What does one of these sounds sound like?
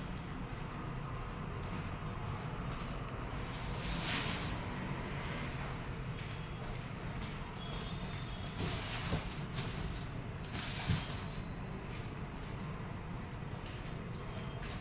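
Sandals slap on a hard floor as a man walks.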